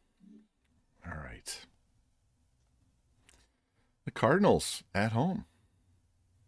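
A man speaks into a microphone in short bursts, calmly.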